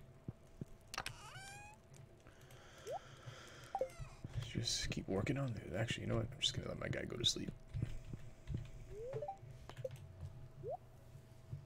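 Short electronic game chimes and blips sound.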